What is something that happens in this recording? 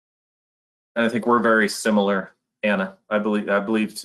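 A second man speaks calmly through an online call.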